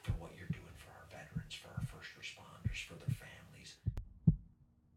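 An older man whispers close by.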